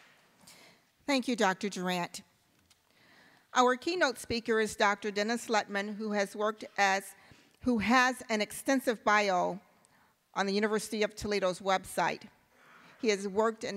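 A young woman speaks into a microphone over loudspeakers in a large hall.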